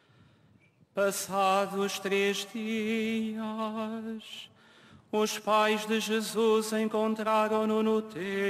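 A man sings a chant into a microphone, heard over loudspeakers outdoors.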